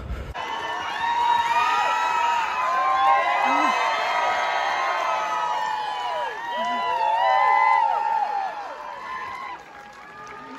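A crowd of women screams and cheers excitedly.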